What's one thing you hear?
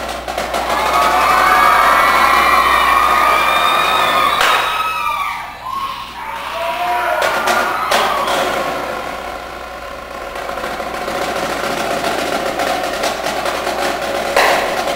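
A drumline plays snare and bass drums loudly.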